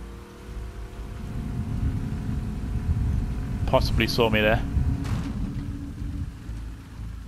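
An outboard motor hums steadily as a small boat moves across water.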